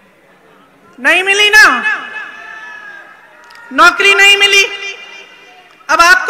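A woman shouts slogans into a microphone over loudspeakers, echoing outdoors.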